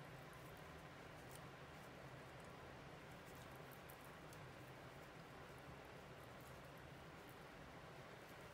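A crochet hook clicks softly against yarn.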